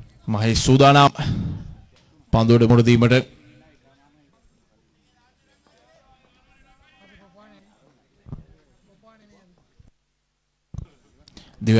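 A man commentates loudly and excitedly over a microphone, then talks more quietly.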